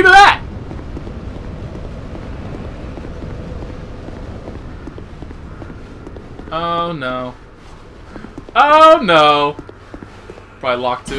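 Footsteps echo on a stone floor.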